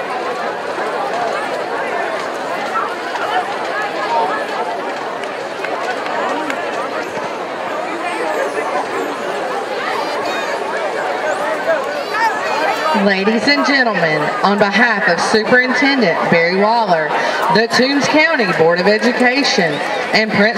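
A large crowd chatters in an open-air stadium.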